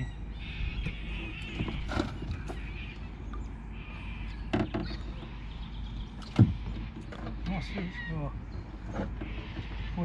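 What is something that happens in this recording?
Hard plastic knocks and clatters close by.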